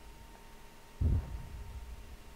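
A burning wreck crashes into the ground with a low, distant boom.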